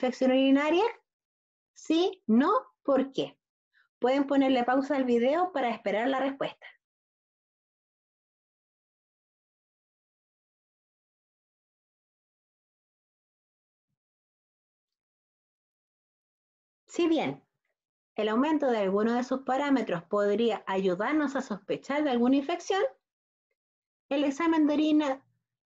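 A woman speaks calmly into a microphone, as if in an online talk, with long pauses.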